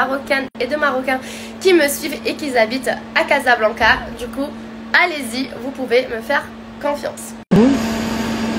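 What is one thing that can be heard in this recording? A young woman talks with animation close to the microphone.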